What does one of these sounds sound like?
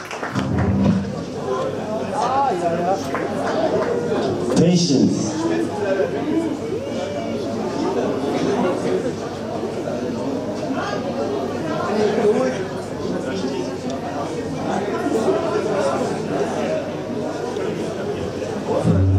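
A band plays loud electric guitar music through speakers in a hall with a lot of echo.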